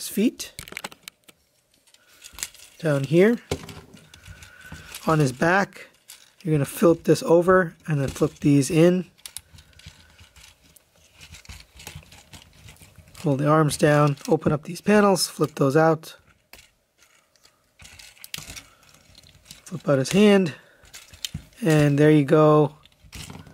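Plastic toy parts click and snap as hands move them.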